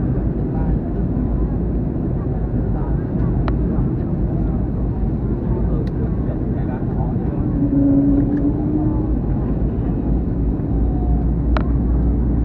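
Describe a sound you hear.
Jet engines roar in a steady low rumble.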